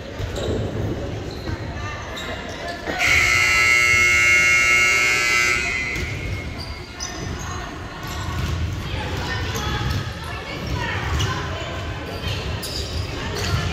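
Young women shout and call out in a large echoing hall.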